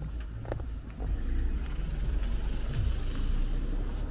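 A car drives past nearby.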